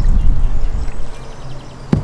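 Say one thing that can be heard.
Liquid pours and splashes into a glass.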